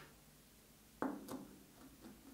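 A screwdriver scrapes and clicks while tightening a screw.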